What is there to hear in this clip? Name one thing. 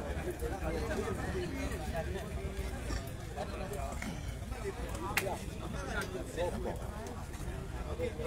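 A large crowd chatters and calls out throughout.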